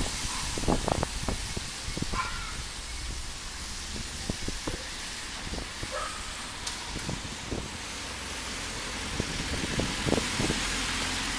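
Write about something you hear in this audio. Wind buffets the microphone with low rumbling.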